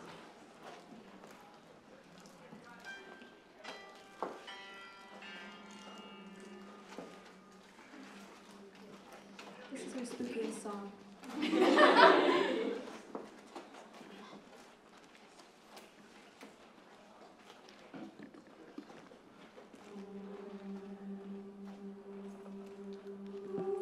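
A group of young women sings together in soft harmony.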